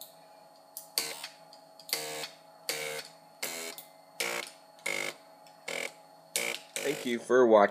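A floppy disk drive whirs and buzzes in short, evenly spaced bursts.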